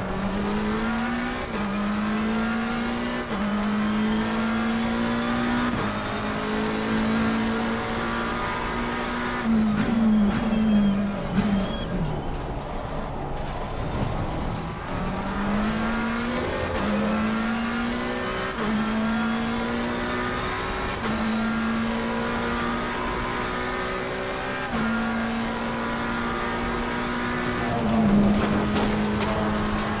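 A racing car engine roars and rises in pitch through each gear, with quick shifts.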